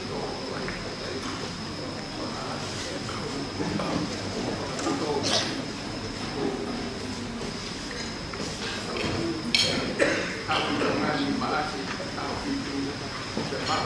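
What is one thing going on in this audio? An elderly man speaks calmly through a microphone and loudspeakers.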